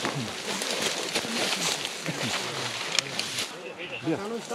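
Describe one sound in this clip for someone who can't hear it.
Dry leaves and undergrowth rustle as a man moves through them.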